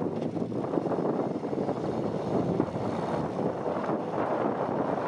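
Tyres churn and spin in loose dirt.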